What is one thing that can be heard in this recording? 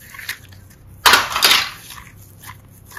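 Foam clay crackles as it is squeezed hard in a hand.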